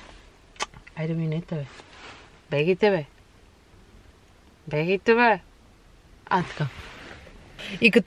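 A young woman speaks close by in short, lively bursts.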